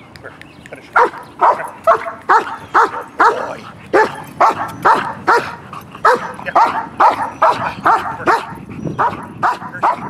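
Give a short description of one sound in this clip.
A dog barks repeatedly.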